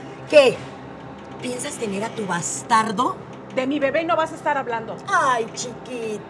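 Another middle-aged woman answers scornfully, close by.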